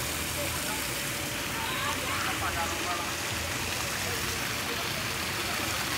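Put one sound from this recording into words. A fountain splashes steadily into a pool.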